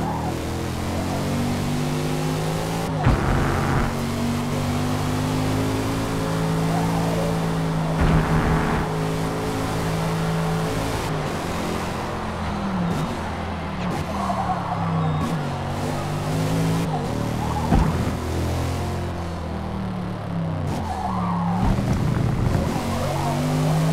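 A car engine roars at high revs, shifting gears and dropping in pitch under braking.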